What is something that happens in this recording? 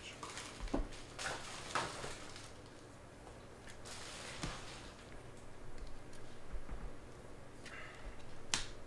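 Trading cards rustle and slide as hands handle them close by.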